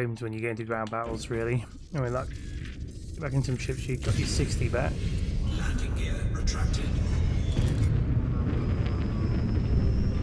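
A spaceship engine rumbles low and grows louder.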